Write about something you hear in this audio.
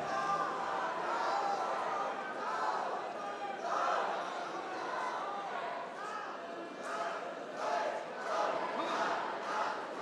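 A karate athlete shouts sharply while performing.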